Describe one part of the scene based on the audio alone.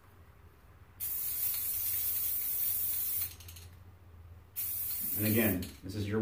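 An aerosol can sprays with a hiss.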